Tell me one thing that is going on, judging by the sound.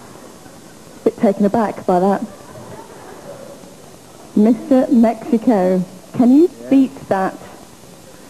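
A woman speaks into a microphone in a lively voice.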